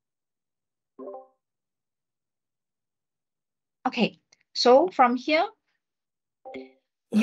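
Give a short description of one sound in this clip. A young man speaks briefly over an online call.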